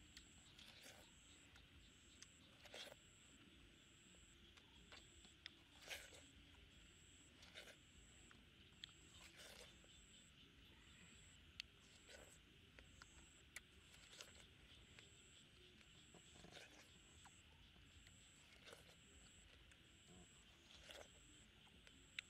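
A boy bites and slurps juicy watermelon close up.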